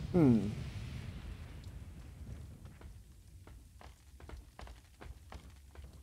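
Boots clank on ladder rungs as someone climbs.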